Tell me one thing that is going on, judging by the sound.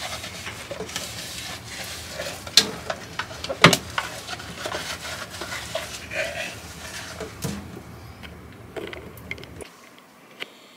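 A cloth rubs and squeaks against a plastic container.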